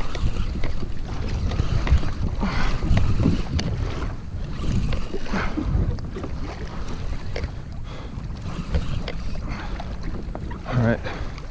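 Wind blusters across open water.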